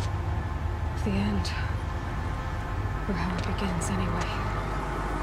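A young woman speaks quietly and sadly.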